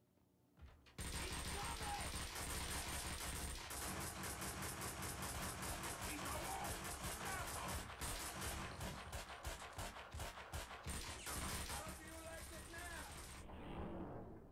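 Guns fire in rapid bursts, loud and echoing.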